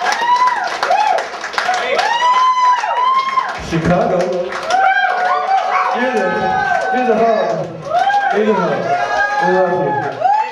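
A man sings and calls out loudly through a microphone.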